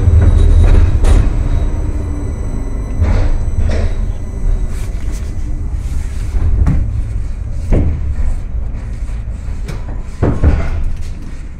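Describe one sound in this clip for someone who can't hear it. Tram wheels clack over rail joints.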